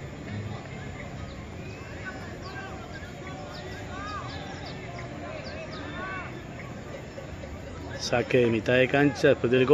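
Young players shout faintly far off outdoors.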